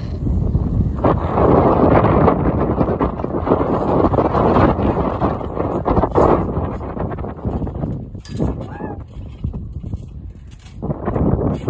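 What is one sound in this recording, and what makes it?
A trampoline mat thumps and creaks as a boy jumps on it.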